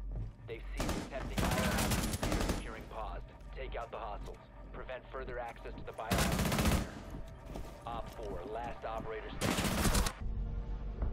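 Gunfire rattles in short loud bursts.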